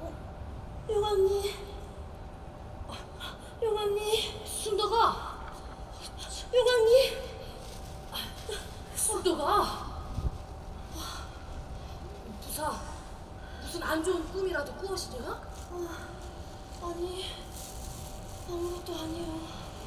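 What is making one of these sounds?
A young woman cries out and speaks with emotion in a large echoing hall.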